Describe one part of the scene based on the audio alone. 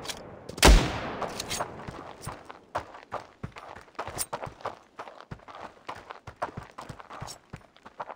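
Quick footsteps crunch on gravel.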